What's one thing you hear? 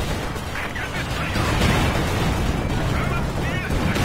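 Shells explode with heavy booms.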